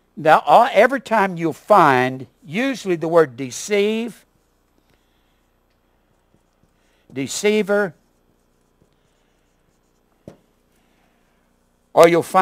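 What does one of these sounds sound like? A man speaks calmly, like a teacher explaining, with pauses.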